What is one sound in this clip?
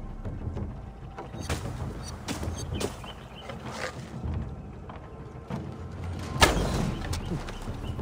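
A bowstring twangs as an arrow flies.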